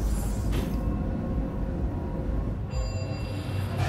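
An elevator hums low and steady as it rises.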